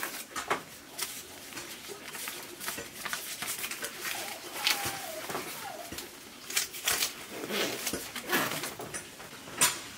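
Paper banknotes rustle in hands.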